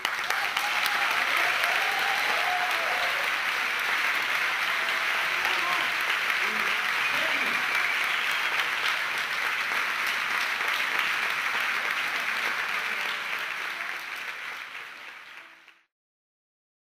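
An audience applauds loudly in a large hall, then the applause fades away.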